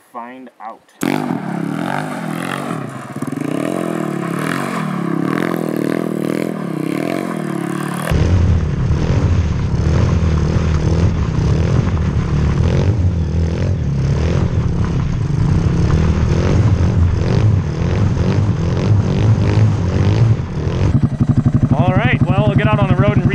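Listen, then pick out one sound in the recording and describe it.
A small engine revs loudly and roars.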